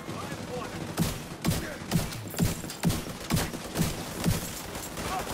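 Gunshots ring out in quick, sharp bursts.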